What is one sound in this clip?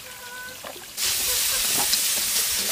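Meat sizzles as it is stir-fried in a metal wok.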